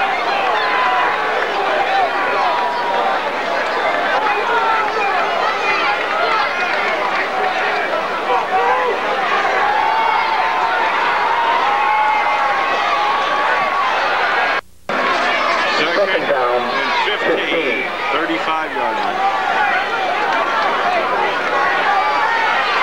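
A crowd of spectators chatters and cheers outdoors, close by.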